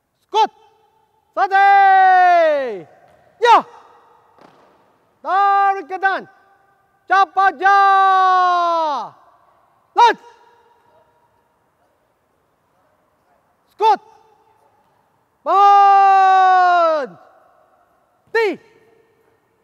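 A man shouts long, drawn-out drill commands.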